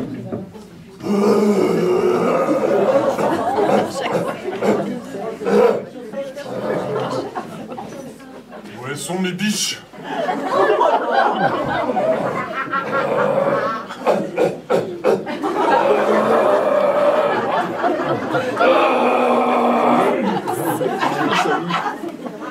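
A man speaks with animation to an audience in an echoing hall.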